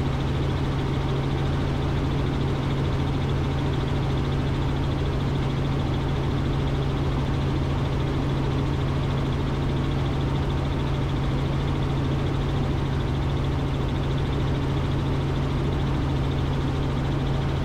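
A helicopter engine and rotor drone loudly and steadily from inside the cabin.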